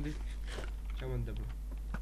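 Feet clatter on a wooden ladder.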